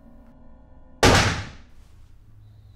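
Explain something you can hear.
A gunshot bangs sharply once.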